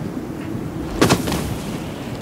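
A body thuds onto the ground after a jump.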